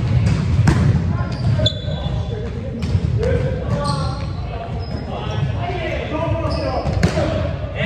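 A volleyball thuds off players' hands and arms.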